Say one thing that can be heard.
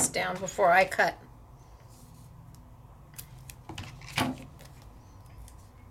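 Sticky tape tears off a roll.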